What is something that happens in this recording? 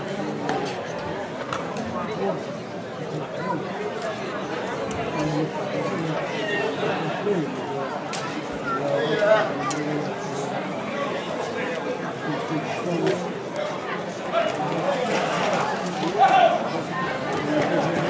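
A large outdoor crowd chatters and calls out throughout.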